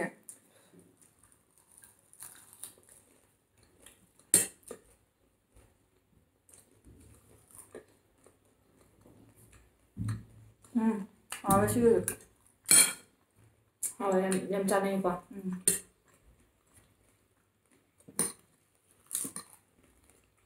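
Crisp leaves crunch as two young women chew.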